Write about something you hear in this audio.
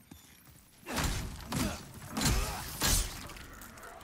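Wooden crates smash and splinter with sharp cracks.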